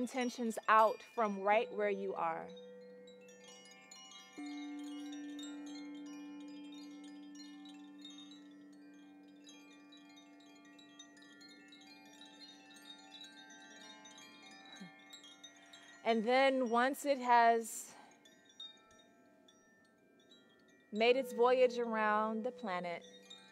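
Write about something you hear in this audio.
Singing bowls ring with long, steady, humming tones.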